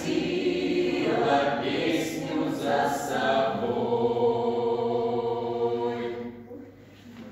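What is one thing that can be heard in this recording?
A group of young people sings together in a large echoing hall.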